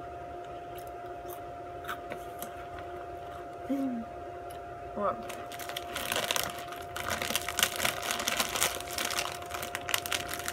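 A young woman crunches food up close.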